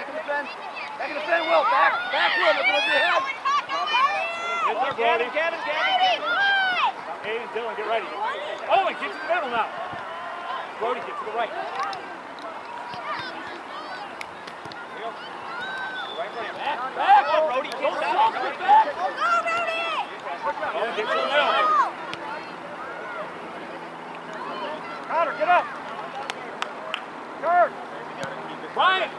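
Young players shout and call out to each other across an open outdoor field.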